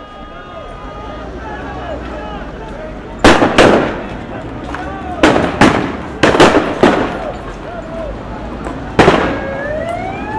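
A large crowd shouts outdoors at a distance.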